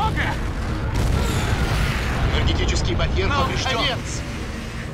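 A large explosion booms and roars.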